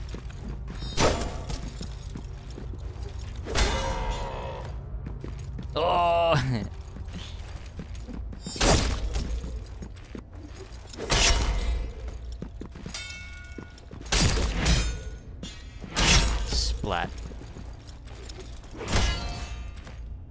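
Heavy blade strikes land with loud, sharp thuds again and again.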